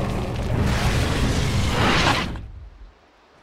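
A magical blast whooshes and crackles loudly, then fades.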